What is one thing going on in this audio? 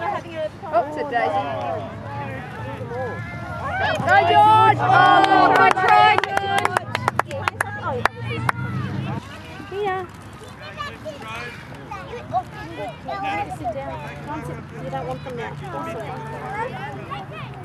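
Children and adult spectators shout and cheer excitedly outdoors.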